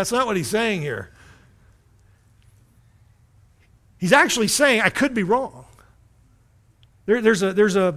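A middle-aged man speaks expressively through a microphone in a reverberant hall, pausing between phrases.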